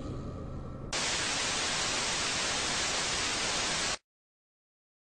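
Loud television static hisses, then cuts off abruptly.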